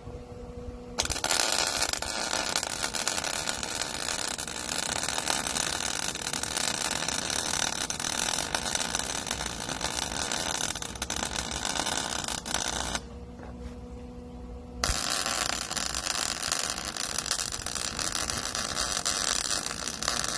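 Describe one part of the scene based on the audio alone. An arc welder crackles and sizzles steadily up close, outdoors.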